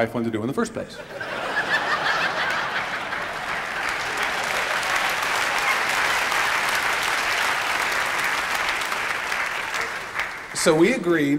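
A large audience laughs and applauds.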